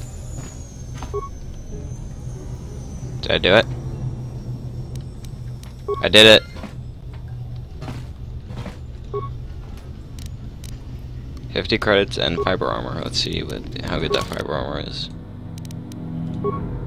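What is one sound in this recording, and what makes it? Short soft electronic beeps sound now and then.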